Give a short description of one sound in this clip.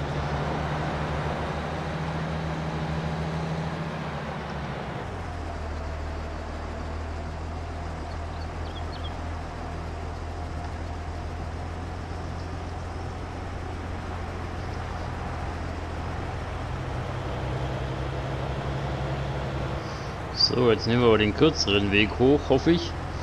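A diesel tractor engine hums steadily as it drives along a road.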